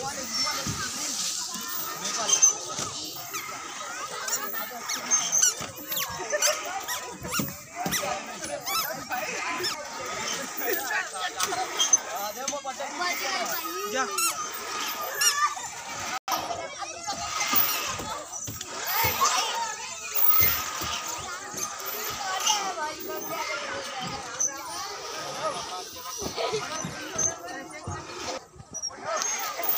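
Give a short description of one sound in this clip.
A child slides down a plastic slide with a soft rubbing swish.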